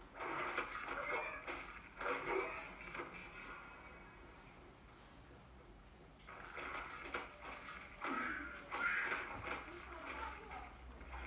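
Video game fight sounds, with whooshes and hits, come from a television speaker.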